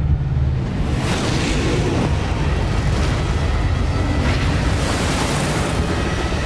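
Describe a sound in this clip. A huge wave crashes and roars.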